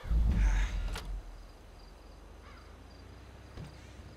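Knuckles knock on a wooden door.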